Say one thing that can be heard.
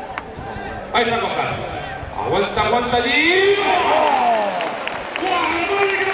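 A crowd cheers and shouts loudly as a bull charges.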